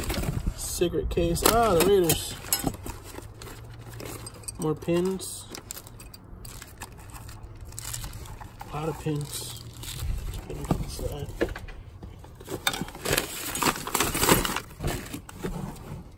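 Small metal tins clink and rattle as they are handled.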